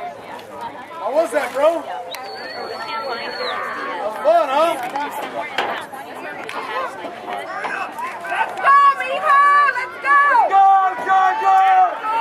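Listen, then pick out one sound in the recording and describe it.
Spectators nearby shout and cheer loudly outdoors.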